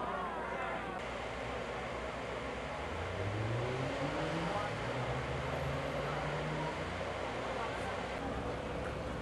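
Vehicle engines idle in slow traffic.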